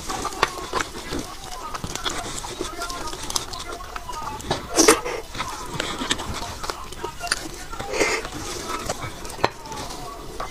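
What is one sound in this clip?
Plastic gloves crinkle as food is handled.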